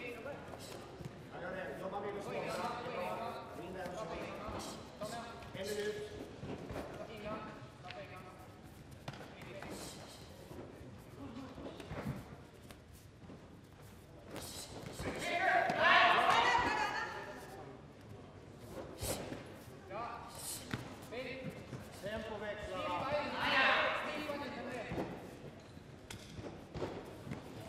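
Bare feet shuffle and thump on a mat.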